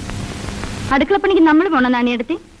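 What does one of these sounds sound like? An elderly woman speaks.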